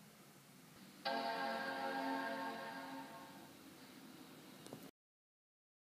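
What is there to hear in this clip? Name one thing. A computer plays its startup chime.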